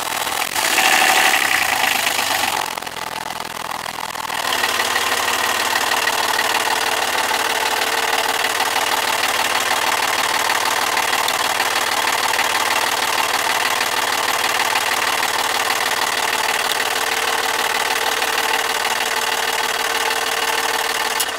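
A small diesel engine runs with a loud, steady clatter close by.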